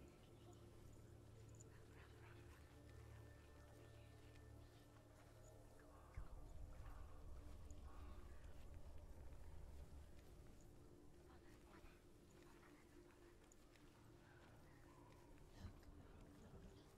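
Footsteps crunch softly on gravel.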